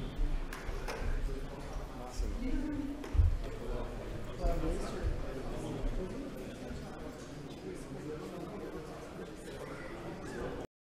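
A man speaks calmly through a microphone in a room.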